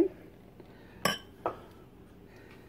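A glass jar clinks against a hard surface.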